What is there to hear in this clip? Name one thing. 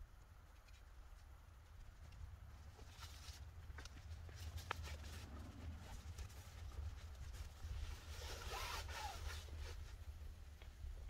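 Tent fabric rustles and flaps as it is handled.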